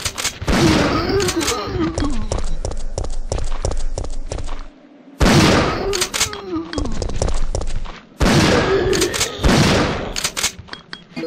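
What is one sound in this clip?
A creature groans and snarls.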